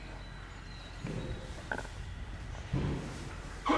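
A horse snorts and blows softly.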